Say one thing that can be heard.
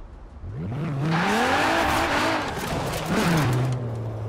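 Car tyres splash through shallow water.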